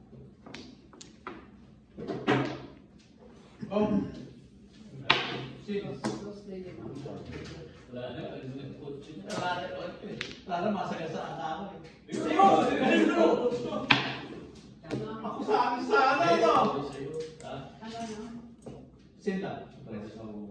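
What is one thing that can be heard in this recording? Mahjong tiles clack against each other and the table.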